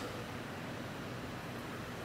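Glass mugs clink together.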